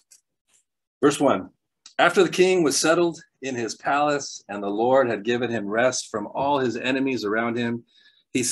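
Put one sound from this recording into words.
A man speaks calmly through a microphone, reading aloud.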